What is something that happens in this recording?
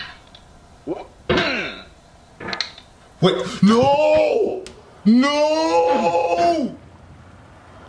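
A young man groans and cries out in frustration.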